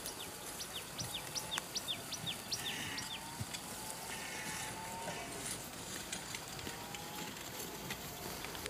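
A plough scrapes through dry, clumpy soil.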